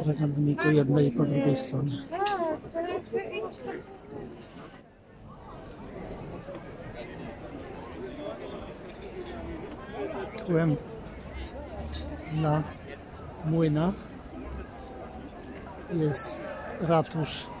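A crowd of people chatters and murmurs in an open outdoor square.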